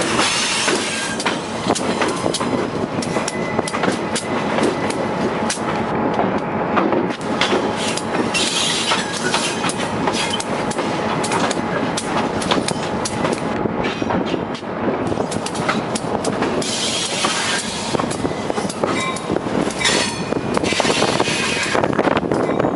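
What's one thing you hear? Train wheels click and clatter over the rails.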